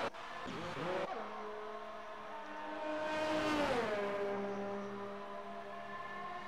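Several racing car engines rev and idle together.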